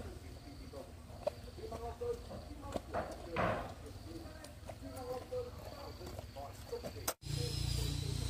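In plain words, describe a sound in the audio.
A child walks in rubber boots on a dirt path.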